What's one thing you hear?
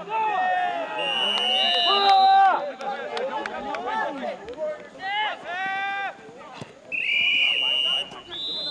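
A referee's whistle blows in short shrill blasts.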